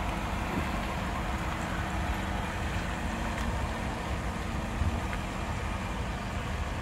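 Tyres hiss softly on a wet road.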